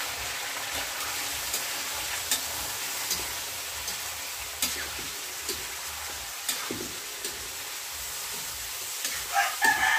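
A metal spatula scrapes and taps against a pan.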